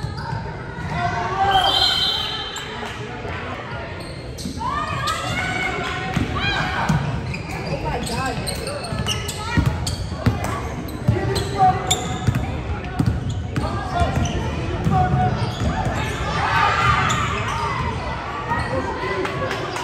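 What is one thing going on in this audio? Young women shout and call out to each other, echoing in a large hall.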